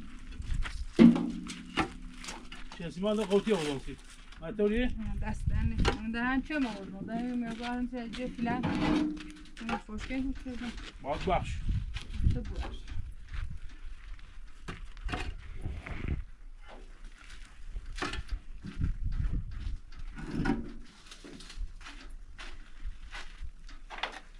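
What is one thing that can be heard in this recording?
Concrete blocks knock and scrape against each other.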